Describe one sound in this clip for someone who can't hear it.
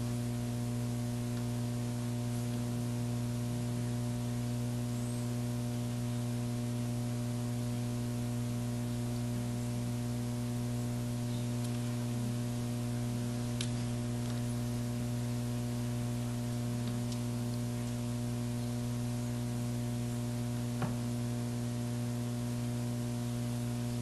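Pens scratch on paper.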